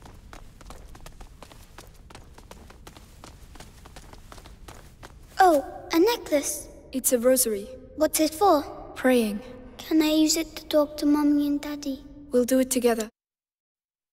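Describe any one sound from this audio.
Footsteps tap softly on a stone floor.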